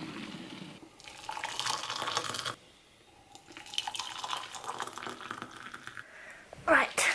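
Hot water pours and splashes into a mug.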